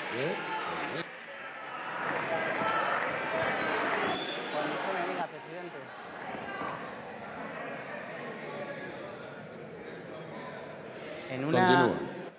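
A crowd murmurs and calls out in a large hall.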